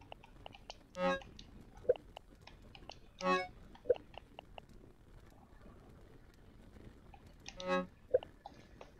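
Short electronic blips sound as game menu items are selected.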